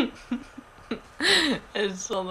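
A young woman laughs close to the microphone.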